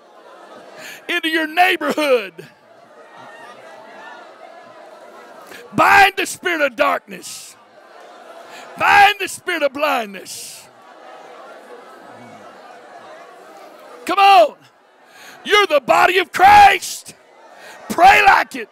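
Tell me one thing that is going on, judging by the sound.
An older man speaks with feeling into a microphone, heard loudly through a loudspeaker in a large echoing room.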